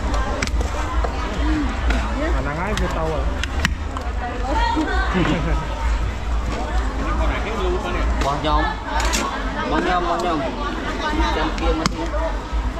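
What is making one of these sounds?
Men and women talk nearby with animation.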